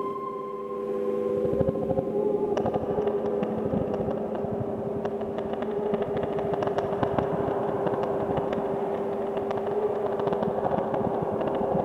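Electronic drum beats click and thump in a fast rhythm.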